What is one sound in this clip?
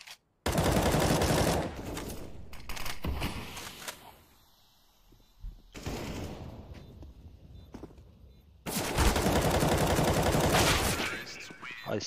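Gunshots fire in loud bursts.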